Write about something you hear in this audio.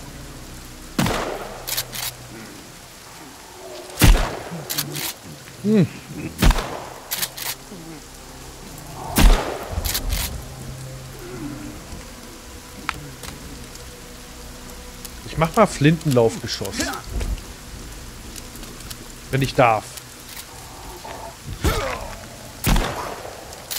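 A shotgun fires loud, sharp blasts.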